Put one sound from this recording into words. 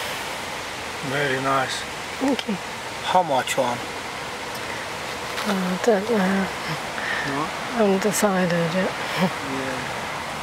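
A man talks calmly nearby.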